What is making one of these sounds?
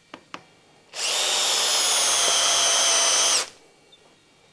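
A cordless drill whirs steadily as it bores into metal.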